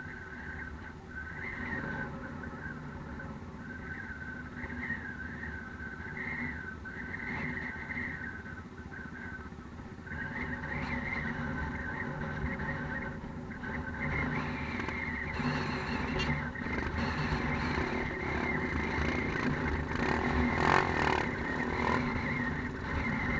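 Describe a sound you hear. A quad bike engine idles nearby.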